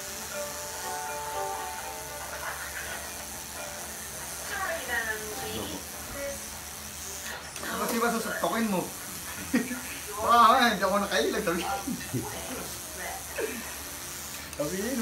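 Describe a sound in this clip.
A tattoo machine buzzes steadily.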